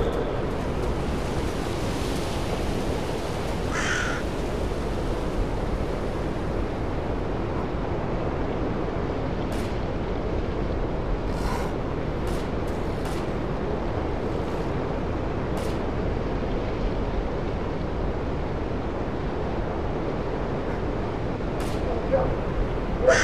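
Wind blows steadily through tall trees outdoors.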